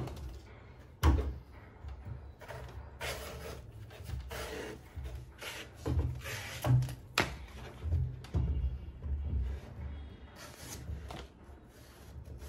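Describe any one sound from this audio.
A knife shaves and scrapes the husk of a coconut.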